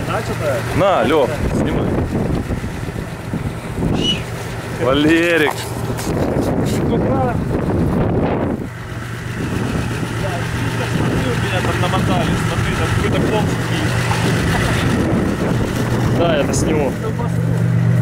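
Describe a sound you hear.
Men talk and laugh nearby outdoors.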